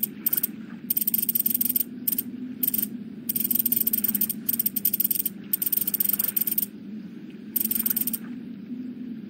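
Soft menu ticks sound in quick bursts as a map scrolls.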